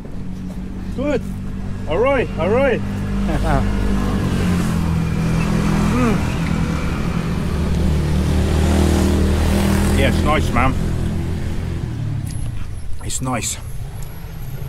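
A middle-aged man talks close by with animation, outdoors.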